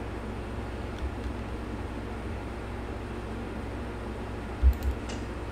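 A building block snaps into place with a dull thud.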